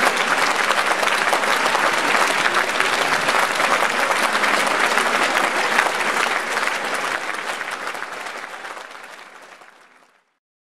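A large audience applauds loudly in a big hall, and the applause slowly fades.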